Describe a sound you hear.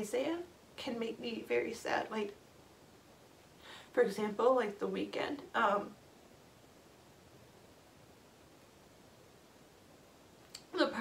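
A young woman speaks tearfully and haltingly, close by.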